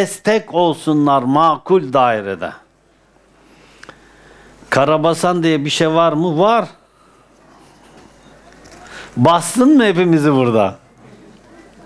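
An elderly man sings long melodic phrases close to a microphone, with pauses between them.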